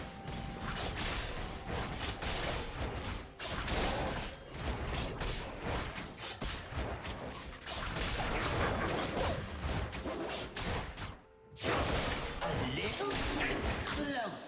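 Fantasy game combat sounds clash and crackle with magic effects.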